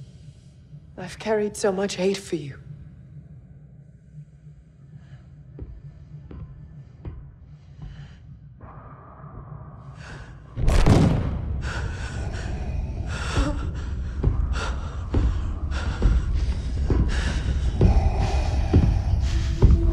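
A woman speaks coldly and with anger.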